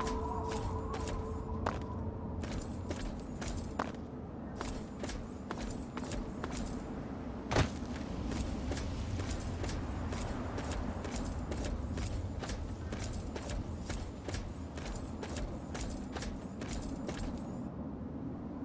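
Footsteps crunch steadily on loose gravel.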